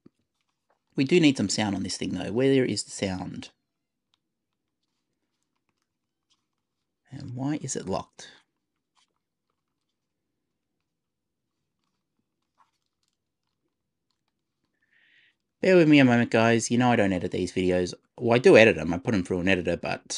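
A man talks calmly and close into a microphone, with pauses.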